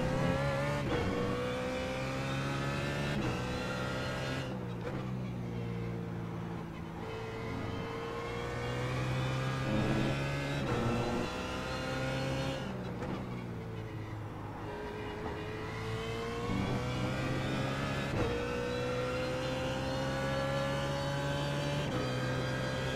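Gears shift with sharp clunks between revs.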